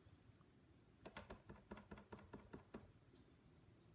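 An ink pad dabs and taps lightly on paper.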